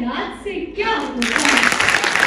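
A woman speaks through a microphone in a large hall.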